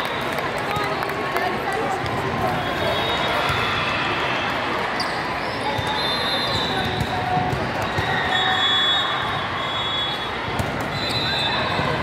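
A volleyball is struck with a thump.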